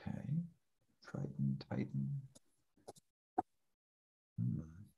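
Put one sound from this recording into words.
A young man speaks through an online call.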